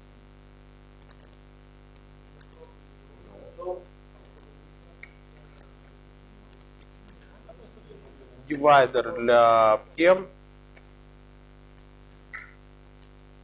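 Laptop keys click softly now and then.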